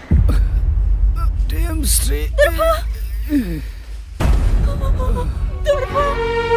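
A young woman sobs and wails.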